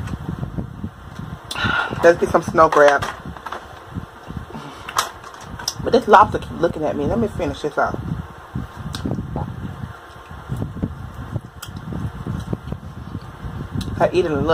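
Crab shells crack and snap as hands break crab legs.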